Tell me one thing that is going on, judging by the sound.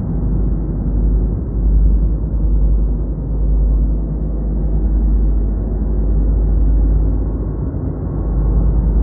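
A clothes dryer rumbles steadily with air rushing through its vent duct.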